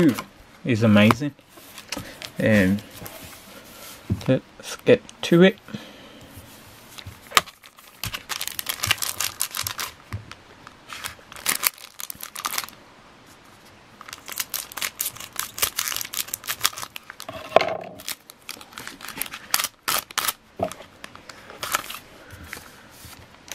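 Foil card packs rustle and crinkle as hands shuffle them.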